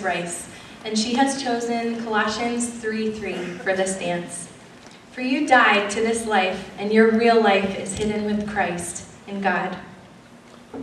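A young woman speaks cheerfully through a microphone in a large hall.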